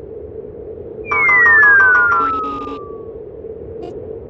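A falling electronic tone sweeps down in pitch.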